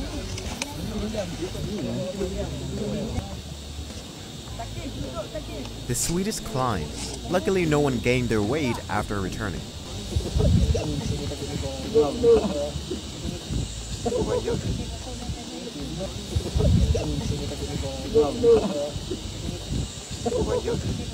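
Wind blows across an open hilltop.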